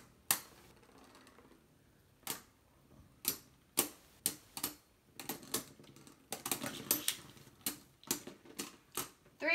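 Spinning tops clatter and knock against each other in a plastic arena.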